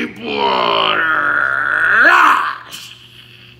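A man groans loudly and strains close by.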